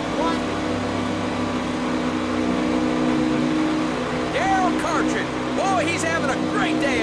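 Racing car engines roar steadily at high speed.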